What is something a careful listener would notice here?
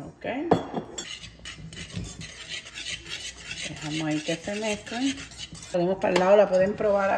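A whisk scrapes and clatters quickly against a metal pot.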